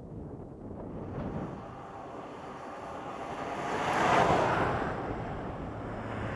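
A pickup truck approaches and rushes past on a road.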